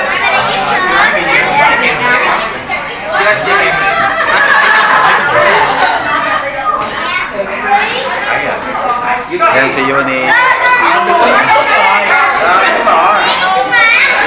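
Many young people chatter and laugh nearby.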